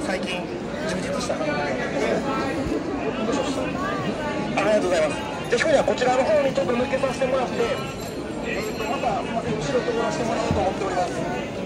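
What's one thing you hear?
Many people chatter and talk all around in a busy, echoing hall.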